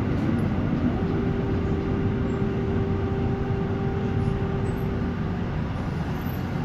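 A tram's motor whines at a steady pitch.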